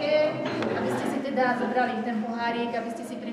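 A woman speaks to a small group.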